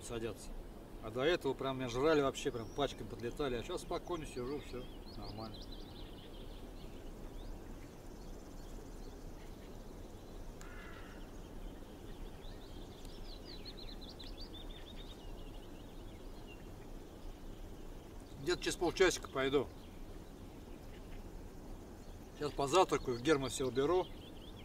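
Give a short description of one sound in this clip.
A man speaks calmly nearby, in short bursts with pauses.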